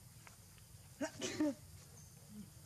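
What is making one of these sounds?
A young monkey squeals briefly.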